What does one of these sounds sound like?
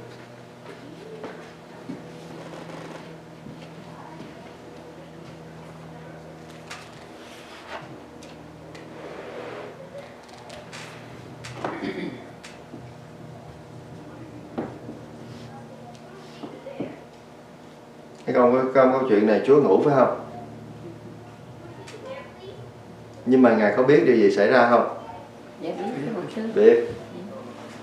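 A man speaks calmly, close by, with pauses.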